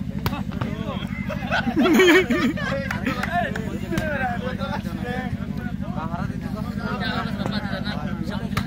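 Several young men talk and call out to each other nearby outdoors.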